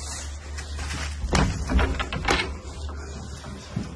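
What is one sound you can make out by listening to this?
A door creaks as a hand pushes it open.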